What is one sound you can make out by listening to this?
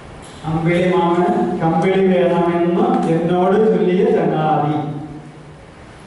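A middle-aged man speaks into a microphone over a loudspeaker in an echoing hall.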